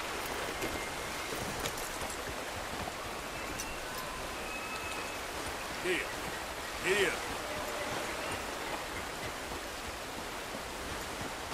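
A horse's hooves clop on rocky ground.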